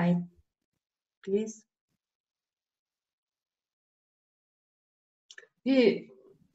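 A young woman speaks calmly over an online call, in short phrases with pauses.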